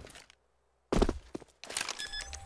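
A keypad beeps rapidly as a bomb is armed.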